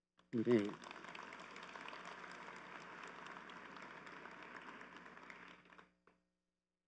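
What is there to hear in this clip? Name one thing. An audience murmurs softly in a large hall.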